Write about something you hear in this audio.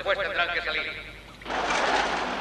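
Water pours from a bottle into a glass.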